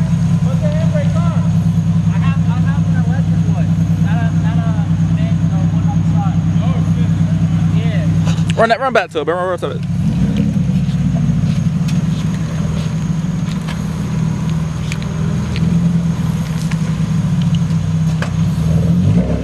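A car engine idles with a steady low rumble.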